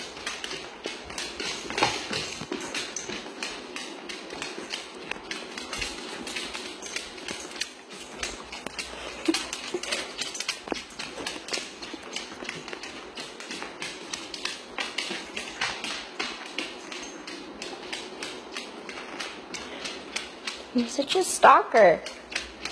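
A dog's claws click and tap on a hard floor.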